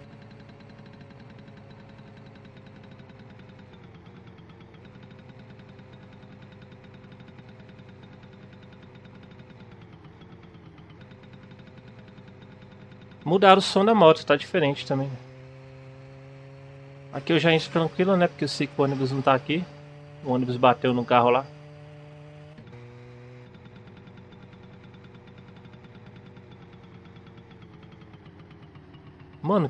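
A small motorbike engine hums steadily, its pitch dipping now and then.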